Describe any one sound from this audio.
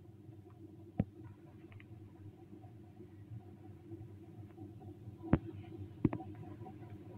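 A mobile card game clicks as cards are moved.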